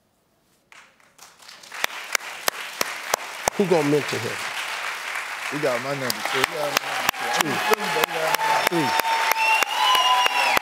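A large studio audience claps and cheers loudly.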